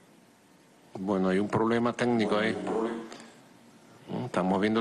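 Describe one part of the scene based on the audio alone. A man speaks calmly into a microphone, heard through a broadcast.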